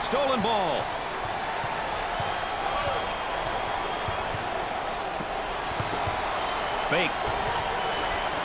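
A crowd cheers and roars steadily in a large echoing arena.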